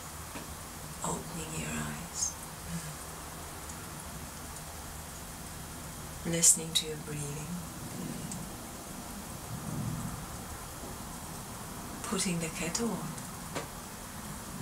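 A woman speaks softly and close by, in short phrases with pauses.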